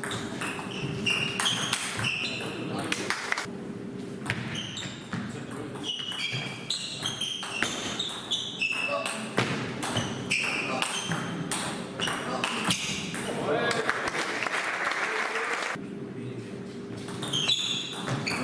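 Shoes squeak sharply on the floor as players move.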